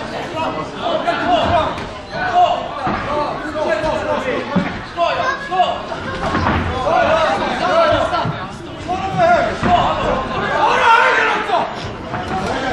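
Spectators shout and cheer loudly nearby in a large echoing hall.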